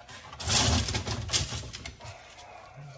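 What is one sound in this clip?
Arrow shafts rattle against each other.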